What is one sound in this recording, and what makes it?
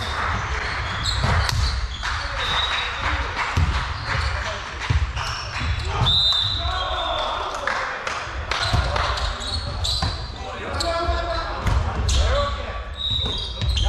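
Men call out to each other across a large echoing hall.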